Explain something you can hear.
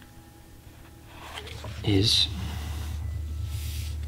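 A stiff paper page turns over with a soft rustle.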